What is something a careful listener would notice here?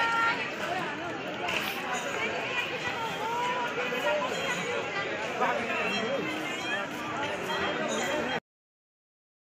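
A crowd of people chatters all around, outdoors.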